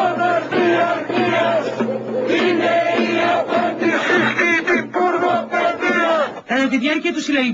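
A crowd chants loudly in rhythm outdoors.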